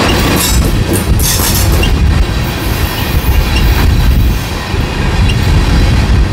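Freight train tank cars rumble heavily past on the rails.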